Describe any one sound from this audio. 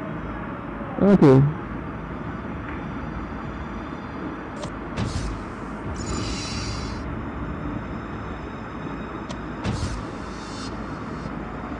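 A video game plays short electronic sound effects.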